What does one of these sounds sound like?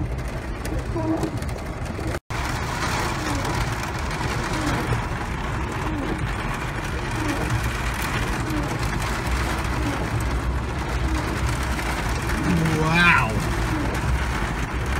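Heavy rain drums steadily on a car roof.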